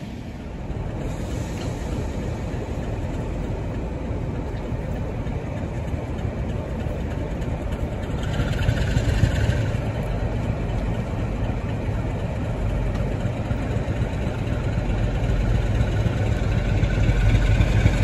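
A diesel locomotive approaches with a deep, growing engine roar.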